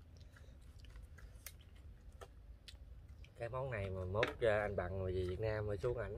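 A young man chews and smacks his lips while eating.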